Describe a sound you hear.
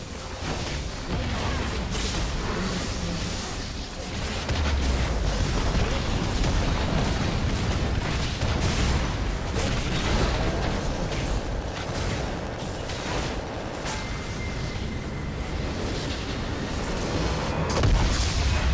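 Video game spell effects crackle and clash in a fast battle.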